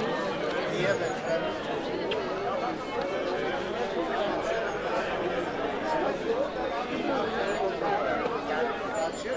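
A large crowd of men and women chatter all at once outdoors.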